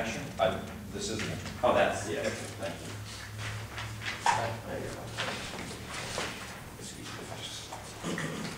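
A man speaks at a moderate distance in a meeting.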